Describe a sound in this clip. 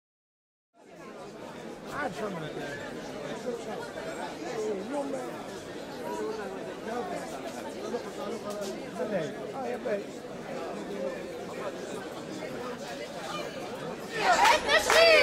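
A crowd of people murmurs and talks outdoors.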